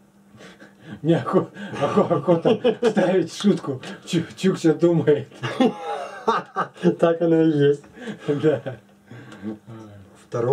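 Two men laugh loudly together.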